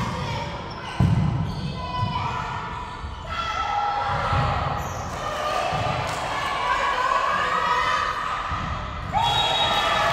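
A volleyball thuds as players hit it.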